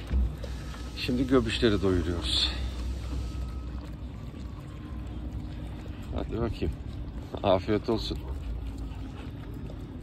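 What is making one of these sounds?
Puppies chew and slurp food close by.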